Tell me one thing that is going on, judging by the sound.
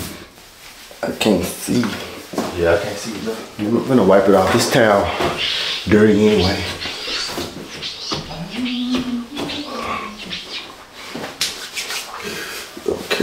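A young man talks loudly and with animation, close by.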